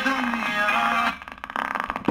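Music plays from a small phone speaker.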